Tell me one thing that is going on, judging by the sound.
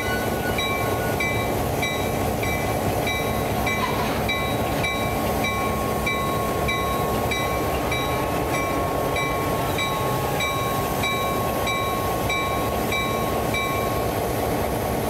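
A locomotive bell rings in a steady, even rhythm.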